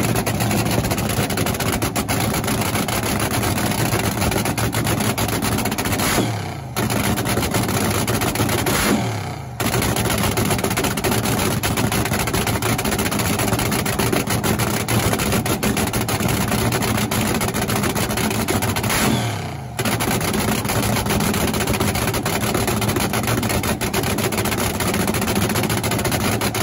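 A dragster engine roars loudly at close range, with the revs dropping now and then and quickly rising again.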